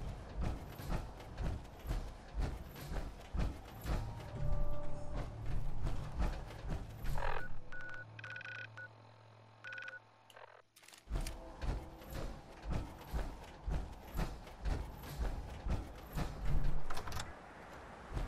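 Heavy armored footsteps thud in a steady rhythm.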